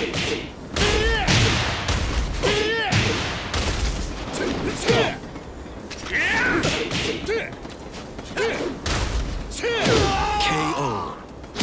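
Punches and kicks land with loud smacking impacts.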